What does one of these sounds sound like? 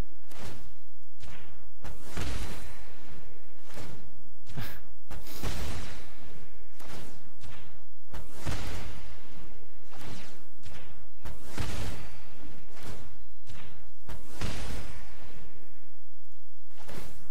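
Magical whooshing effects sweep past as spells are cast.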